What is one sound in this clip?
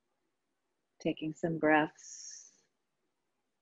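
A woman speaks calmly through a microphone, as on an online call.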